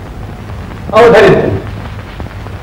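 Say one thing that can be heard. A man cries out loudly for a moment.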